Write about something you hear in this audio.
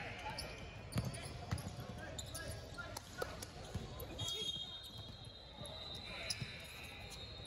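A basketball bounces on a hard court in a large echoing gym.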